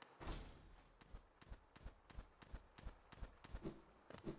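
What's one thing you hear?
Light quick footsteps tap along in an even rhythm.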